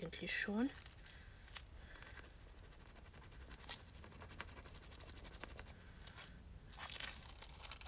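Metallic foil crinkles and rustles under fingers.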